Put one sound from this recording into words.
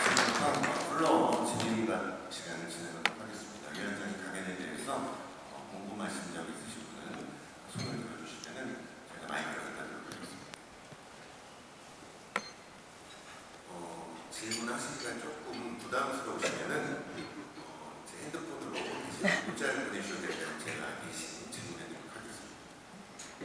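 A middle-aged woman speaks calmly through a microphone in a large, echoing hall.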